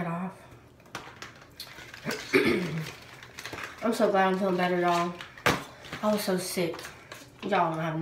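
A cardboard box rustles as it is handled.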